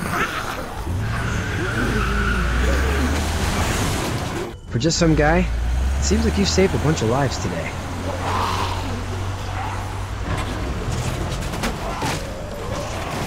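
A truck engine rumbles and pulls away.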